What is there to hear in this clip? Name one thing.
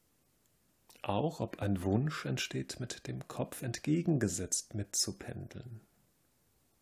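A man speaks calmly, close to a microphone.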